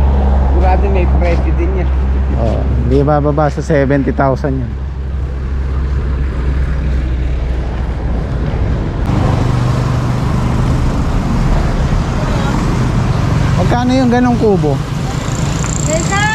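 Traffic hums along a nearby road outdoors.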